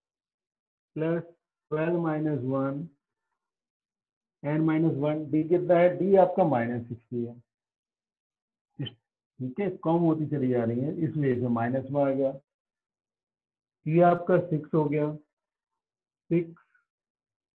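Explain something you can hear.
A middle-aged man speaks calmly, explaining, close by.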